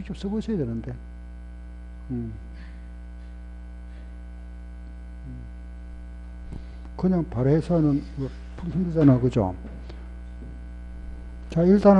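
An elderly man lectures through a microphone and a loudspeaker, in bursts with pauses.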